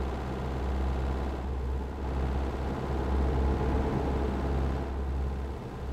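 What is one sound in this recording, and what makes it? A large truck passes close by with a rushing whoosh.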